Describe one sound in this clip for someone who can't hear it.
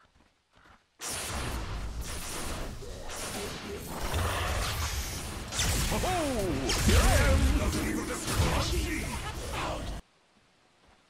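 Electric spell effects crackle and boom in a fantasy battle game.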